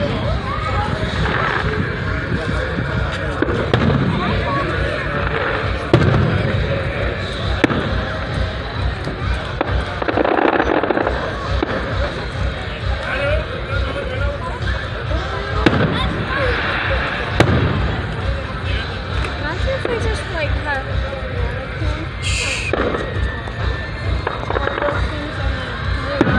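Fireworks bang and crackle in the distance, outdoors.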